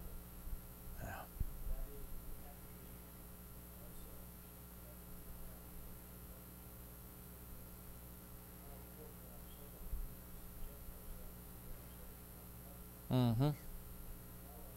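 A man speaks briefly and quietly, with long pauses.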